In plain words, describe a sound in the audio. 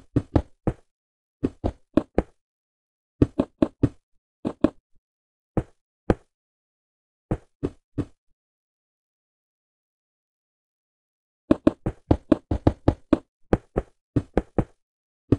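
Stone blocks thud in quick succession as they are placed in a video game.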